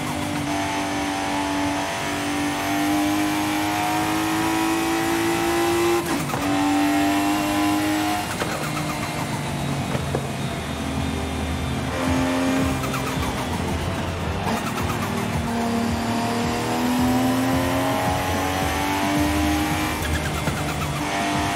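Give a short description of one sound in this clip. A car engine roars, its pitch climbing and dropping as the gears shift.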